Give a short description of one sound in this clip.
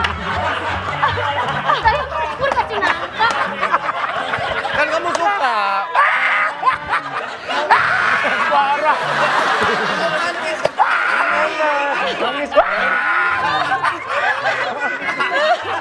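Several people laugh together.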